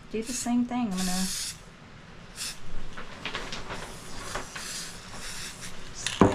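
An aerosol can sprays in short hissing bursts.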